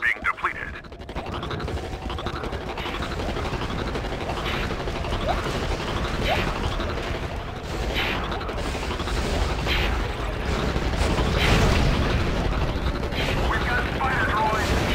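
Blaster shots crack and zap in quick bursts.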